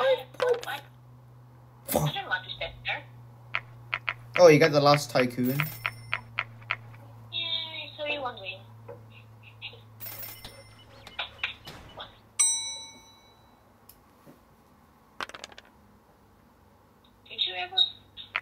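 Dice clatter and tumble as they roll.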